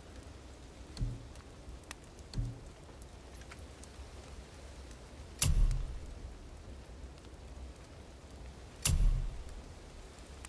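Soft game menu sounds thud and chime as options are picked.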